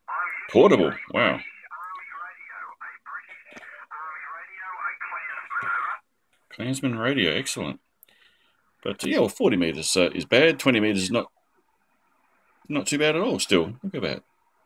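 An HF radio transceiver's speaker plays garbled single-sideband audio as it is tuned across the band.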